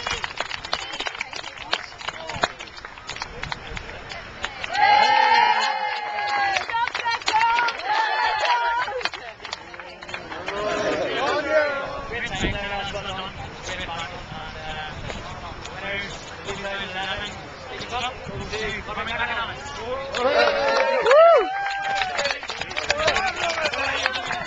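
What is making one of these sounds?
A crowd chatters in the open air.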